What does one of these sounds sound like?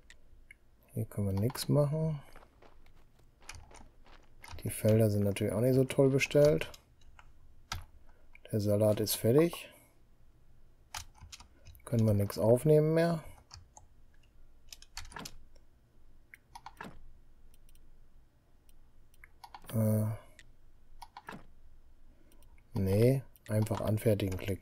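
A middle-aged man talks calmly into a close microphone, in short bursts.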